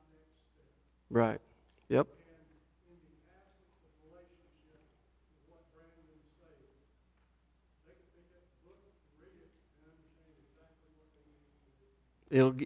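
A man speaks calmly to an audience in a large hall.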